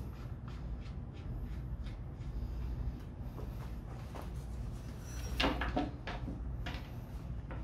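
Metal parts clink and rattle.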